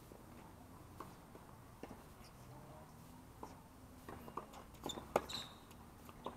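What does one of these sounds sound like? Tennis balls are struck with rackets and bounce on a hard court.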